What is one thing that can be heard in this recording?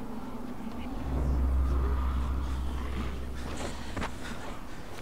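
A low rumbling whoosh rises as someone leaps and falls.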